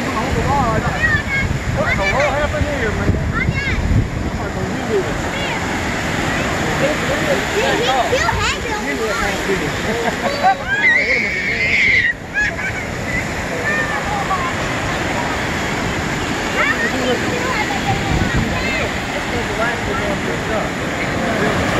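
Surf breaks and washes up on a beach.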